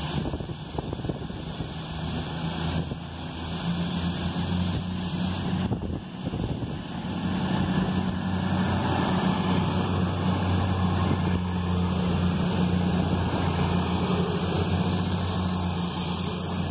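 Train wheels clatter over the rails.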